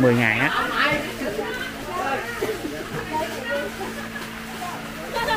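Several women chatter in the background.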